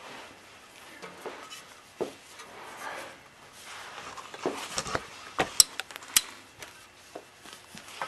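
A plastic panel scrapes and rattles as it is handled.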